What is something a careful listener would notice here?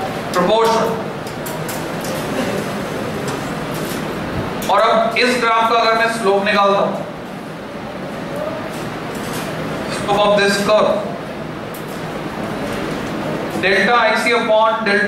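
A man lectures with animation in a room with a slight echo.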